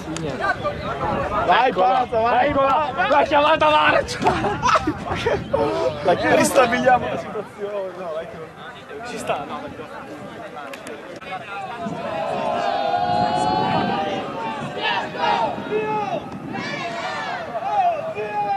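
Young men talk and shout to each other outdoors.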